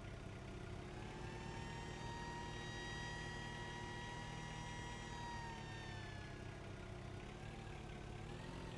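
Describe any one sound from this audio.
A forklift engine hums as the forklift drives.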